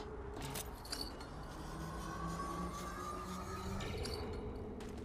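A metal pulley whirs along a cable.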